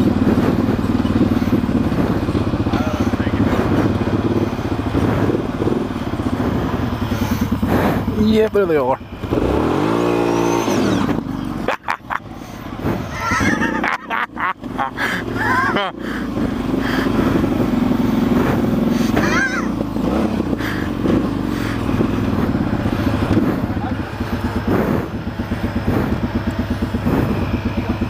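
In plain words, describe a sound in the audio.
A vehicle engine rumbles and revs close by.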